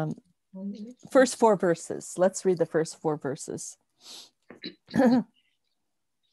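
An elderly woman speaks calmly, heard through an online call.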